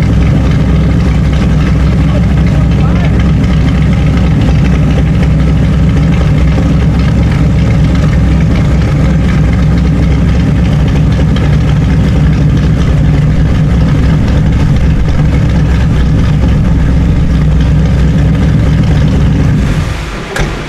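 A car engine idles loudly with a deep, steady rumble and then cuts off.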